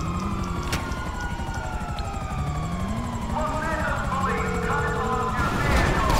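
A motorbike engine revs.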